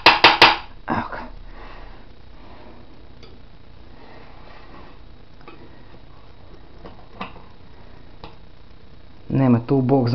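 A metal spatula scrapes and taps against a ceramic dish.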